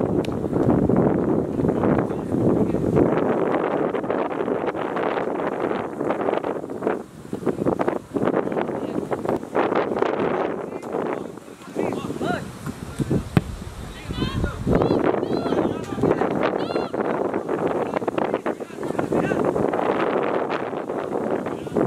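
Wind blows in gusts across the microphone outdoors.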